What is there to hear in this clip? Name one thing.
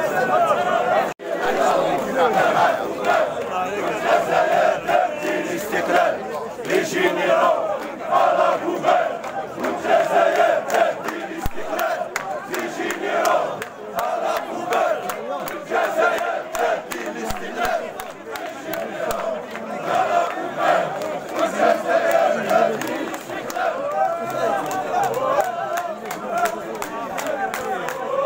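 A large outdoor crowd of men chants loudly in unison.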